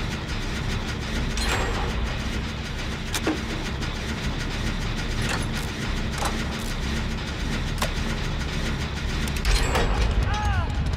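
A generator engine rumbles and clanks steadily.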